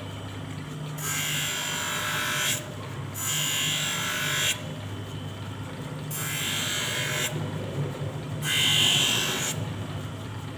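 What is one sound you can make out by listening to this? A lens grinds against a spinning wheel in short hissing bursts.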